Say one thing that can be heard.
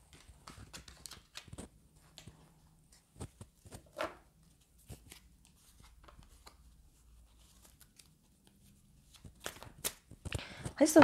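Cards are shuffled and shuffled again with soft clicks and snaps.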